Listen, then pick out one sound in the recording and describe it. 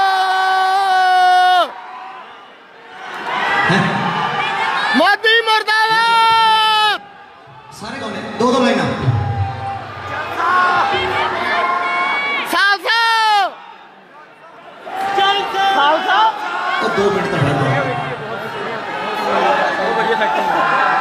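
A man sings into a microphone through loud speakers, holding long wavering notes.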